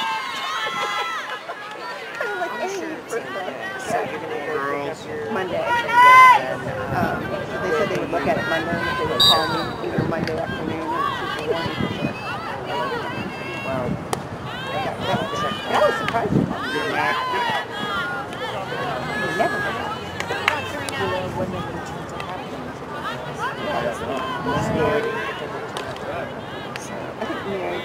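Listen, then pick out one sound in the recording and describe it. A crowd of spectators nearby chatters and shouts throughout, outdoors.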